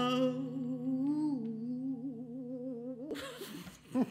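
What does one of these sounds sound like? A young woman sings a held note into a microphone, ending a song.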